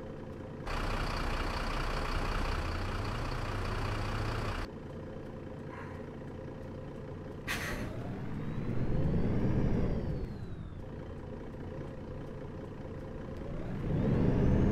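A bus engine idles with a low rumble and revs up now and then.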